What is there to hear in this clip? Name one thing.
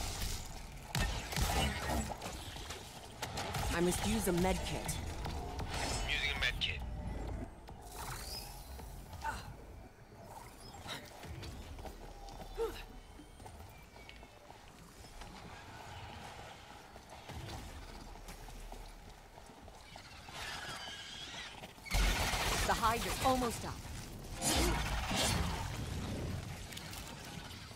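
Video game effects whoosh and clatter.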